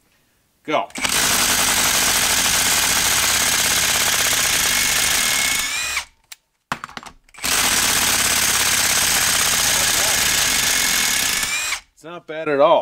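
A cordless impact driver hammers rapidly as it drives a long screw into wood.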